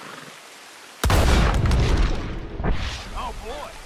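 A gunshot bangs loudly and echoes.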